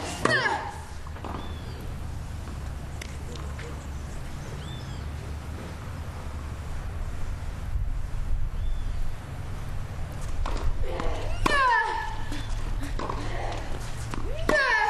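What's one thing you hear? A young woman grunts loudly as she hits the ball.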